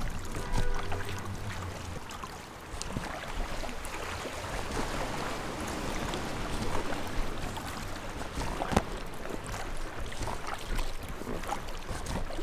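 Water laps and ripples around a small boat.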